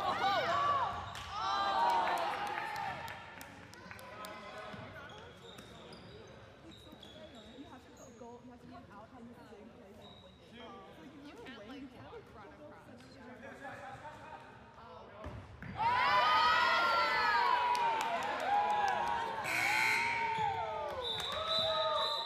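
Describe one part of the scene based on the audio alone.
Sneakers squeak sharply on a gym floor in an echoing hall.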